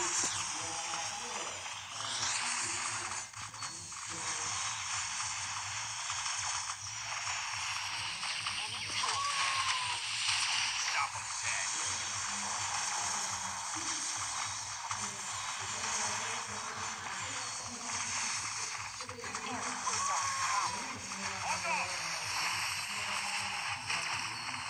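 Game battle sounds of clashing, blasts and magic zaps play steadily.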